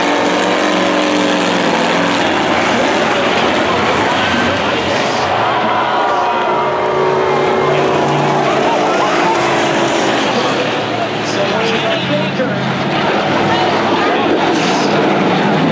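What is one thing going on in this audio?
Car engines roar loudly.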